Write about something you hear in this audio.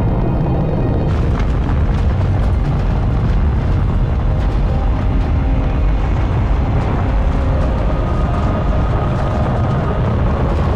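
An aircraft engine hums steadily.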